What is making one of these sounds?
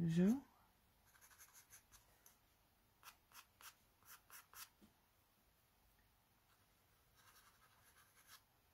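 A pencil scratches softly on paper in short strokes.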